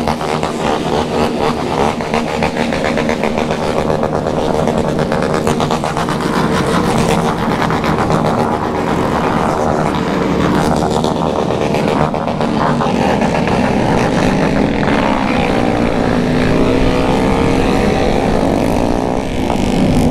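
A motorcycle engine rumbles steadily while riding.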